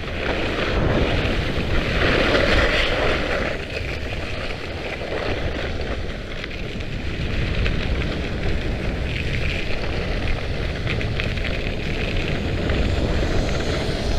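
Wind rushes and buffets loudly.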